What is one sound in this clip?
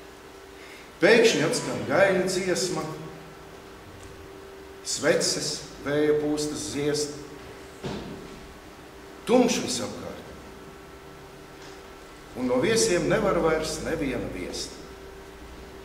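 An elderly man speaks calmly and clearly in a room with a slight echo.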